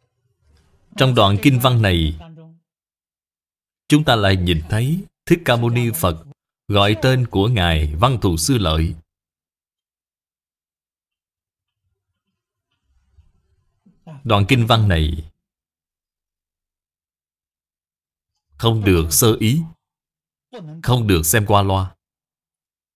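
An elderly man speaks calmly and slowly into a microphone, pausing between phrases.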